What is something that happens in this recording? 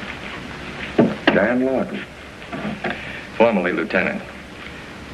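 A man speaks in a calm voice.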